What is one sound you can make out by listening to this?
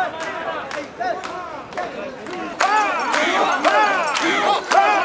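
A large crowd of men and women chants loudly in rhythm outdoors.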